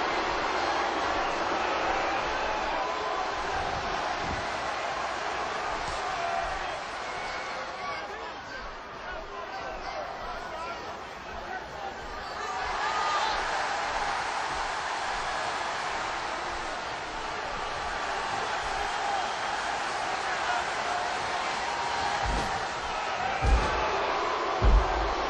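An arena crowd roars and cheers.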